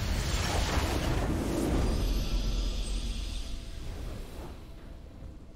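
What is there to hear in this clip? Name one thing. A triumphant game fanfare bursts out loudly and fades away.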